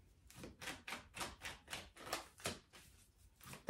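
Cards are shuffled with quick, soft riffling taps.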